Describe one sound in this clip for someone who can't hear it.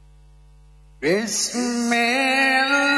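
An elderly man chants loudly in a long, wavering melodic voice through a microphone and loudspeakers.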